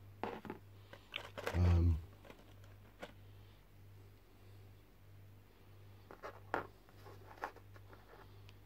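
Small plastic pieces rattle and click in a plastic tray.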